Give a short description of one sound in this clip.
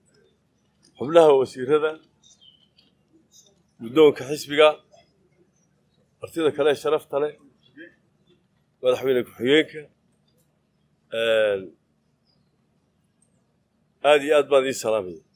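An elderly man speaks slowly and firmly into microphones, in short phrases with long pauses.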